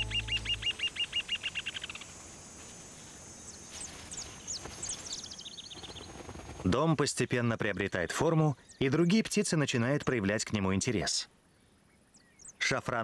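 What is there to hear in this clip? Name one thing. Small birds chirp and whistle outdoors.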